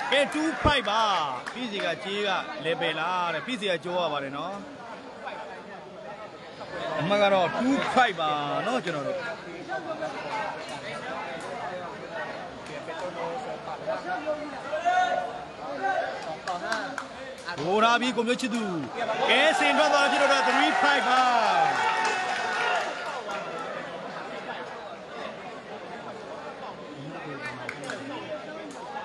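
A large crowd chatters and cheers loudly in an echoing hall.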